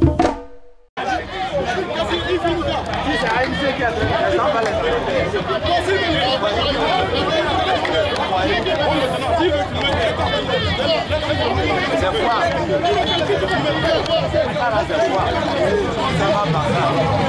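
A crowd of men talks and shouts loudly outdoors.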